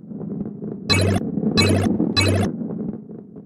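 Bright chimes ring as coins are collected.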